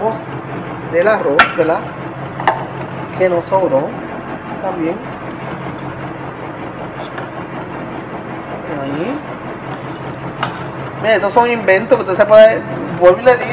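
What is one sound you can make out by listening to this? A metal spoon scrapes food out of a pot.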